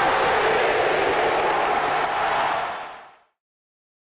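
A large stadium crowd cheers loudly.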